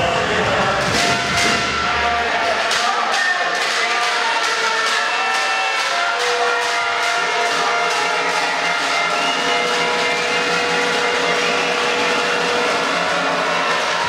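A crowd of spectators chants and cheers loudly.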